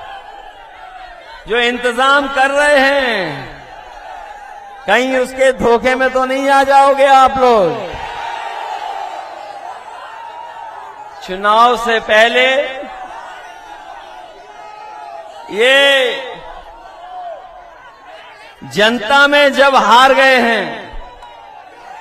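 A large crowd cheers and murmurs in the background.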